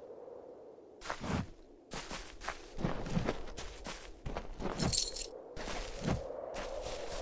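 Weapons clash and strike in a close fight.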